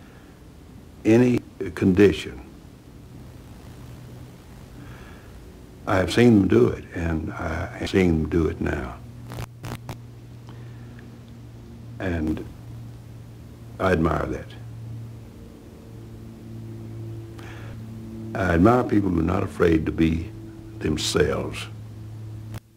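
An elderly man speaks calmly and slowly, close by, in short phrases.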